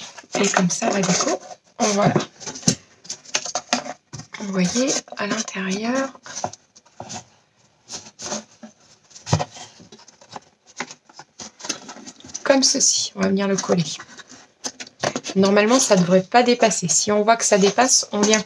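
Cardboard and paper strips rustle and scrape as hands fold and press them.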